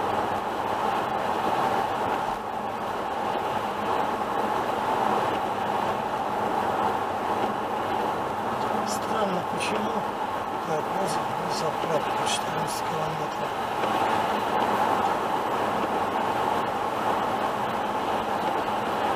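A car's tyres hiss steadily on a wet road.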